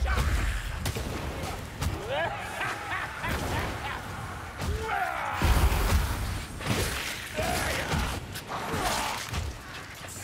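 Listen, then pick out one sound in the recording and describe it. Creatures screech and snarl as a horde rushes in.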